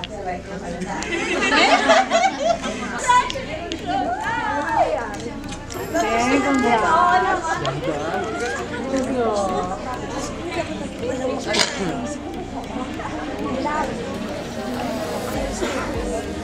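A woman speaks excitedly and laughs up close.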